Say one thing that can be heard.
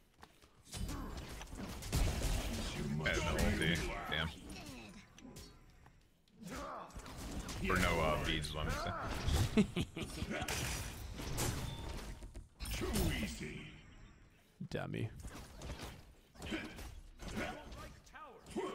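Game combat sounds of clashing blows and magic blasts ring out.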